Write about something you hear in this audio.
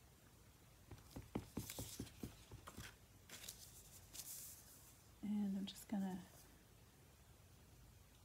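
Paper rustles and slides on a table.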